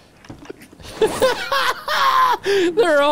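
A man laughs loudly into a close microphone.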